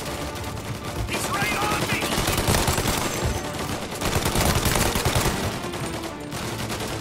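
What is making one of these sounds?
A submachine gun fires in rapid bursts, echoing between walls.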